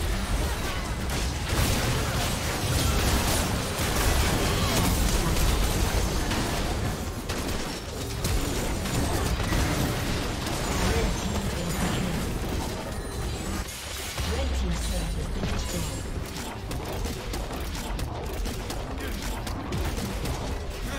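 Fantasy battle sound effects crash and whoosh as spells and blows clash.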